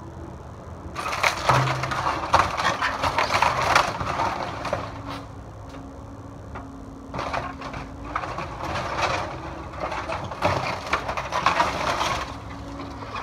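Wooden boards crack and splinter as an excavator bucket tears into them.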